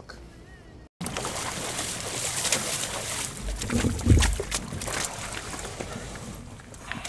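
Water splashes as people wade beside a boat.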